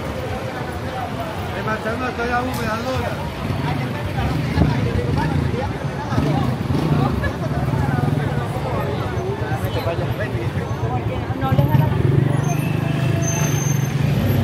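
A crowd of people chatters and talks in a busy street outdoors.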